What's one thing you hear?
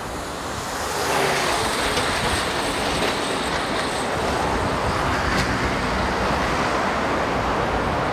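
Traffic rumbles past on a road outdoors.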